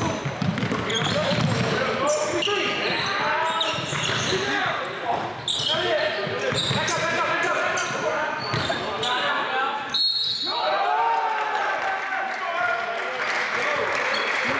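A basketball bounces on the wooden floor.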